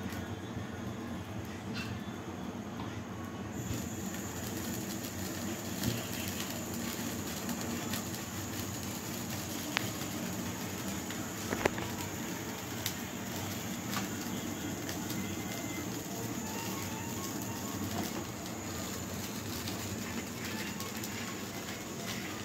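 A gas burner hisses steadily.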